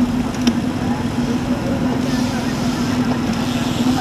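A motorcycle engine putters close by.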